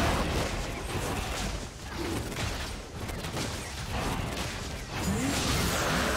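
Game spell effects whoosh and burst during a fight.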